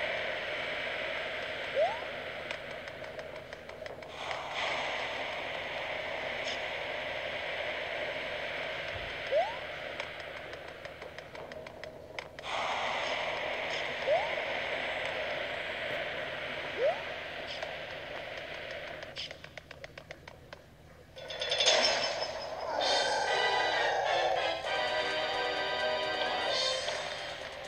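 Upbeat video game music plays through a television speaker.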